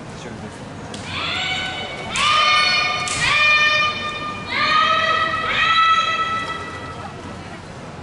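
Young women shout long, drawn-out calls in a large echoing hall.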